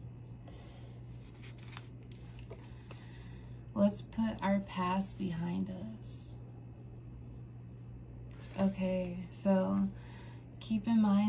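Paper cards rustle and flick softly in hands.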